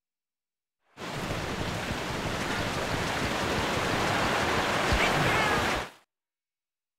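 A waterfall rushes loudly nearby.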